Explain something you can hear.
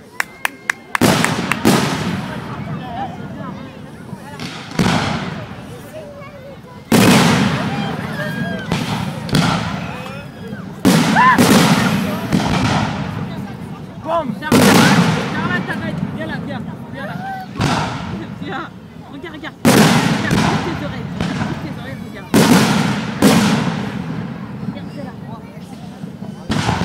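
Fireworks crackle and fizz after the bursts.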